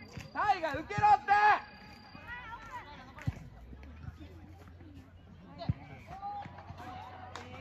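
Young football players shout calls across an open outdoor field.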